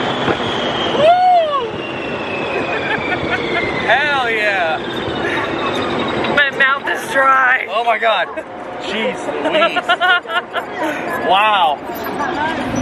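A young woman talks and laughs excitedly close by.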